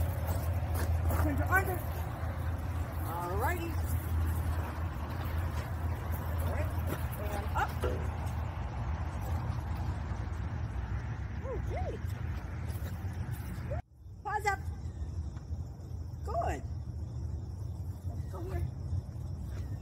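A woman speaks softly and encouragingly to a dog nearby.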